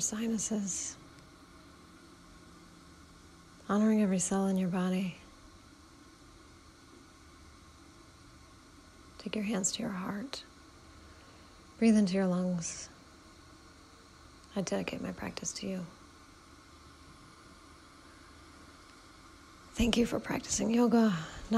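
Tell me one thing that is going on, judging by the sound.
A woman speaks calmly and softly in short phrases, close by.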